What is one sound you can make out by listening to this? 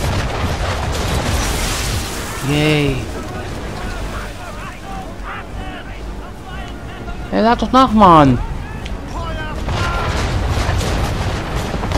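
Cannons boom in loud, heavy blasts.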